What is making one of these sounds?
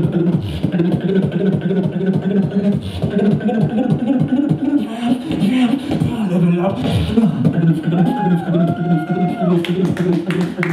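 A man beatboxes loudly into a microphone, with deep rhythmic bass and clicks.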